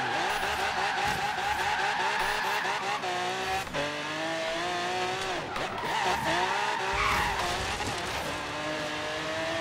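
Tyres squeal while a car drifts through corners.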